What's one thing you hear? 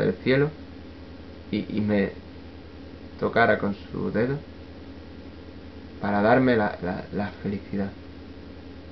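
A young man speaks calmly and close by, in short bursts with pauses.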